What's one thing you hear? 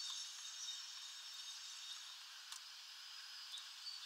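A small bird pecks and cracks seeds close by.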